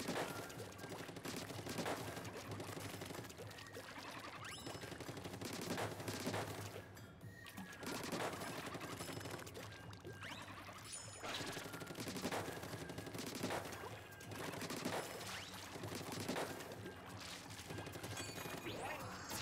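Upbeat electronic game music plays steadily throughout.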